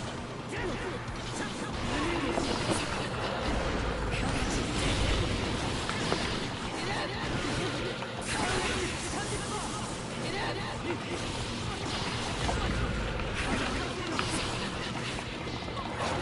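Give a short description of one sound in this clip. Game fighting sounds of hits and slashes crack and whoosh in quick bursts.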